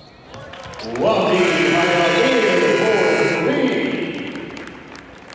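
A buzzer blares loudly in a large echoing arena.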